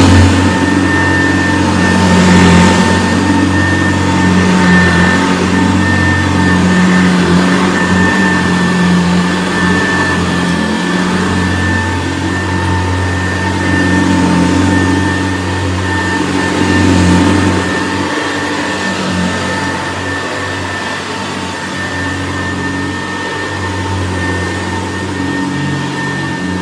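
A vintage upright vacuum cleaner hums as it is pushed back and forth over carpet.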